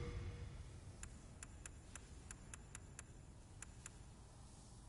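Menu clicks tick softly several times.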